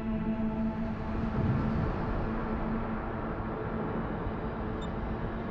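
A ship's engine rumbles steadily over churning water.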